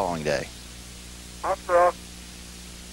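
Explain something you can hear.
A man speaks briefly over a crackly radio.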